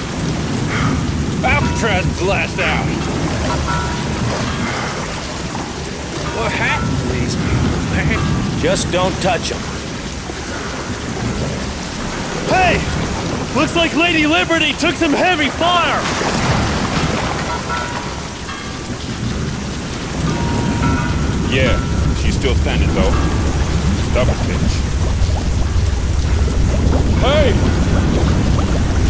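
Rain pours down steadily.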